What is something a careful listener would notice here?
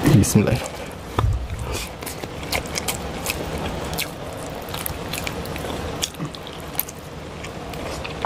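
Men chew and smack their lips loudly up close.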